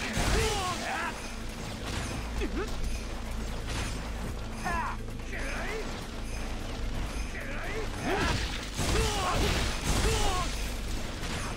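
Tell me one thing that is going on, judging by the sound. Men cry out in pain.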